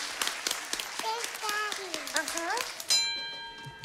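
Young children clap their hands and cheer.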